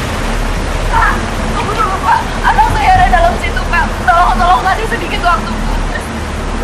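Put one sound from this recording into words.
A young woman speaks urgently and close by.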